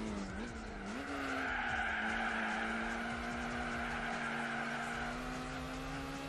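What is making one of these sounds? Tyres squeal through a long corner.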